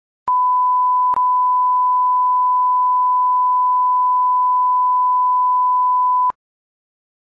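A steady, high-pitched test tone sounds, with one brief break near the start, then cuts off.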